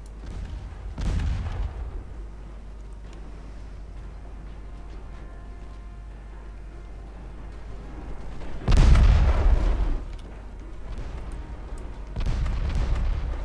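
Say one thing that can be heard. Heavy ship guns boom in loud bursts.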